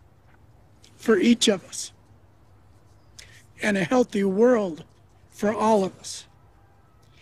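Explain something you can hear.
A middle-aged man speaks calmly and closely into a microphone, in short phrases with pauses.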